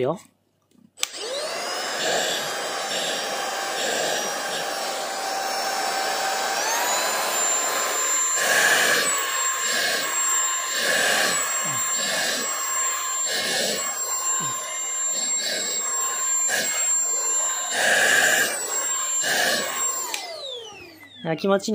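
A handheld vacuum cleaner whirs steadily close by.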